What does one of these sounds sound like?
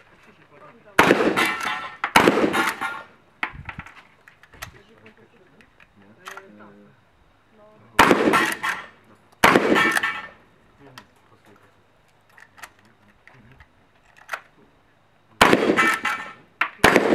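A shotgun fires loud blasts that echo across open ground.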